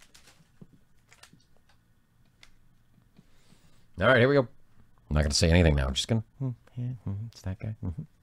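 Trading cards rustle as they are flipped through.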